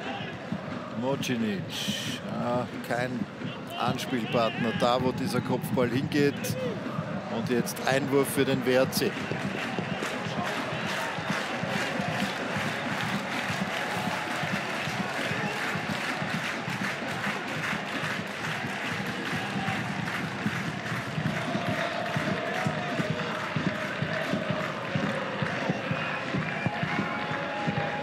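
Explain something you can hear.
A large crowd cheers and chants in a stadium.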